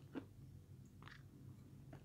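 A woman sips a drink.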